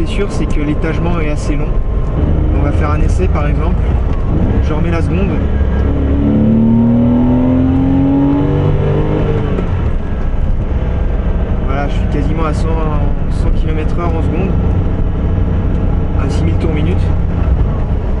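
A car engine rumbles steadily and rises in pitch as the car speeds up.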